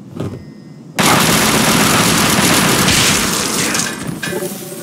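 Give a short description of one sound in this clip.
Gunfire bursts out in a loud, rapid volley.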